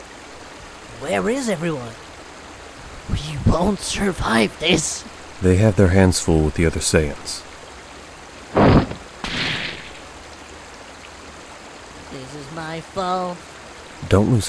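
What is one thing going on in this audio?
An elderly man speaks tensely.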